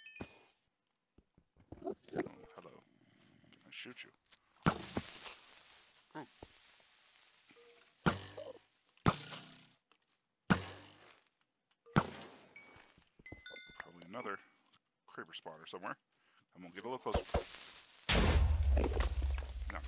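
Blocks thud softly as they are placed and broken.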